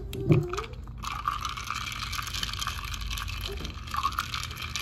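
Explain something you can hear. A spoon stirs and clinks inside a glass jar.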